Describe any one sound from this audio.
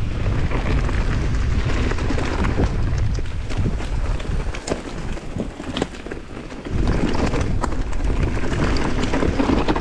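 Wind rushes past a fast-moving rider.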